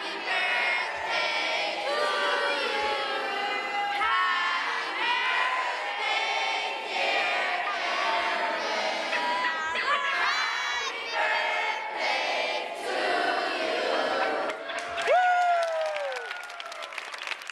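A large group of children sings loudly together in an echoing hall.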